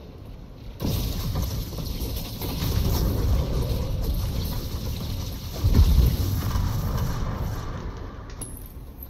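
A spacecraft engine roars and rumbles close by.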